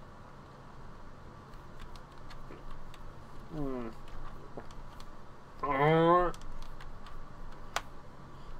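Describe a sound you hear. Short menu blips sound from a game.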